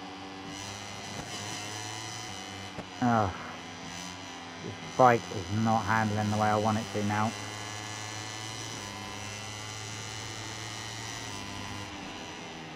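A racing motorcycle engine screams at high revs.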